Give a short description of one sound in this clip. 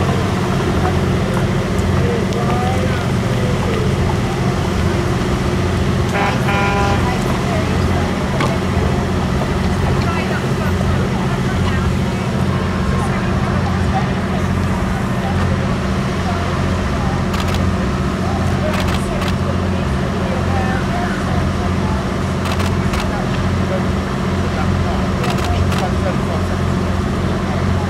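A woman talks calmly nearby outdoors.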